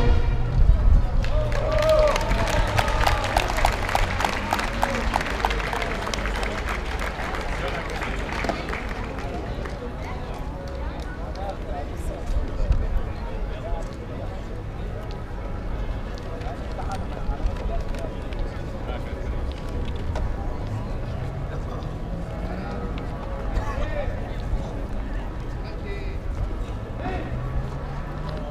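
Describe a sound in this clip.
A crowd of people chatters outdoors along a street.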